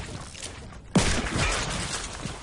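A shotgun blasts loudly.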